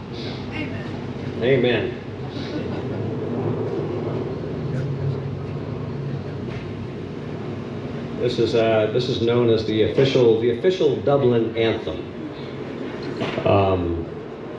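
An acoustic guitar strums through a loudspeaker.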